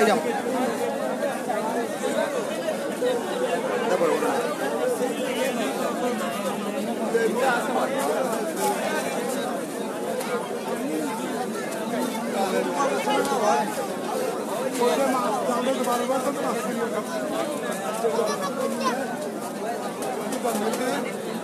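A crowd of men and women talk loudly all around, close by.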